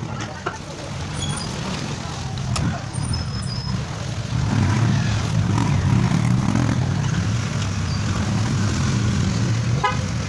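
A motorbike engine hums past close by.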